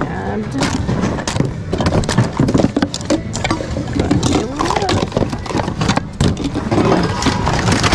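Plastic items clatter and rattle as a hand rummages through a bin.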